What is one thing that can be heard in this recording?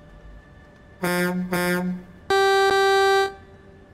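A truck's air horn blasts twice, then sounds one long blast.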